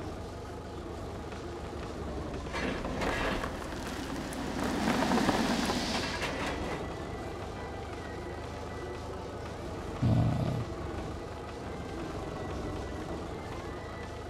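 Wheels crunch over sand and gravel.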